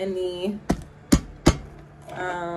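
Fingernails tap sharply on a stack of cards.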